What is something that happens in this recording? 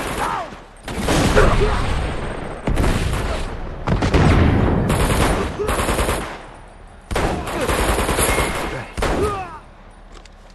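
A rifle fires loud rapid bursts of gunshots.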